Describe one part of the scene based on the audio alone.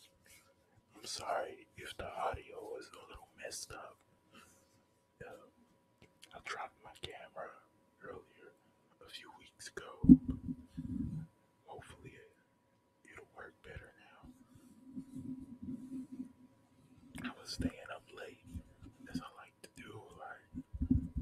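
A young man speaks softly and closely into a microphone.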